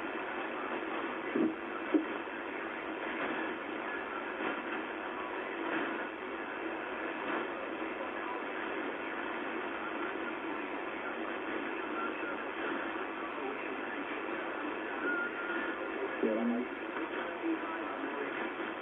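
A shortwave radio hisses and crackles with static from its speaker.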